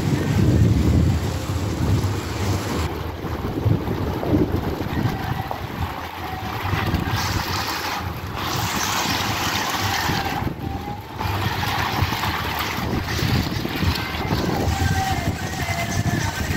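Fountain jets bubble and splash steadily into a pool nearby.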